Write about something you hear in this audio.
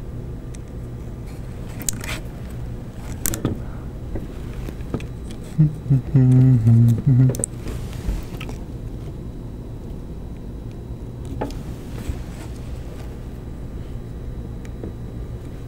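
Plastic parts click and rattle as they are fitted together by hand.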